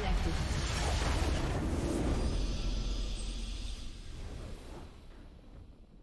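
A triumphant video game fanfare booms and slowly fades away.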